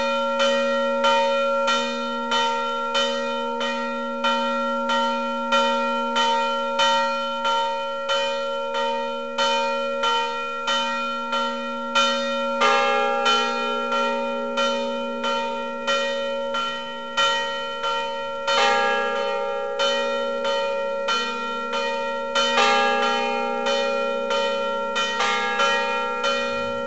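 Church bells ring in a quick, steady peal, each stroke ringing on, with the notes shifting partway through.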